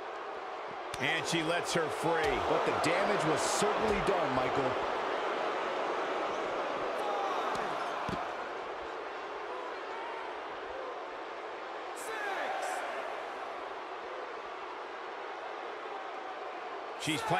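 Blows thud as wrestlers strike each other.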